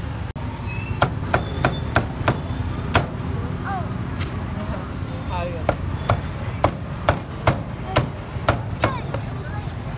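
A cleaver chops sharply on a wooden board.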